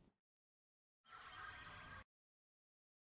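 A magical whoosh rushes by.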